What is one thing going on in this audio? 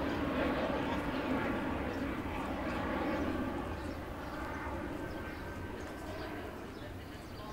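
A man talks quietly some distance away.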